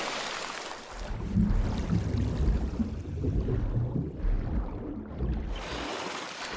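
Water rumbles and gurgles, muffled as if heard underwater.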